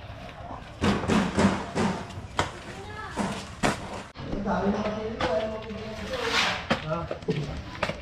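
A bucket clanks as a man carries it.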